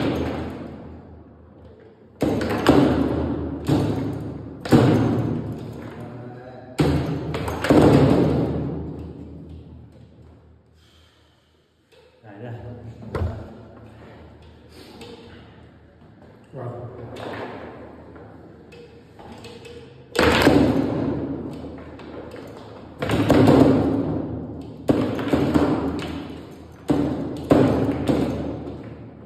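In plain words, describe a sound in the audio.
Foosball rods slide and spin with rattling knocks.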